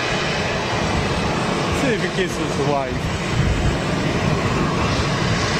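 A jet engine roars steadily as an airliner taxis nearby.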